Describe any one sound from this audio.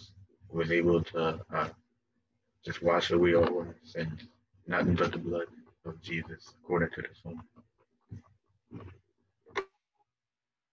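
A young man speaks with animation over an online call.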